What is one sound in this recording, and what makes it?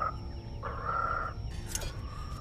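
A toad croaks loudly.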